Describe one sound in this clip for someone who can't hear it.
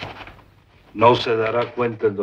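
A second man answers in a calm voice.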